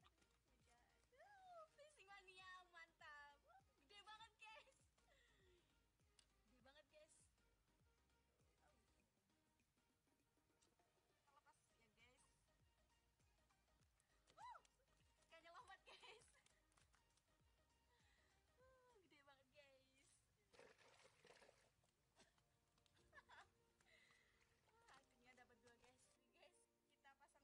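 A young woman talks and laughs with animation close by.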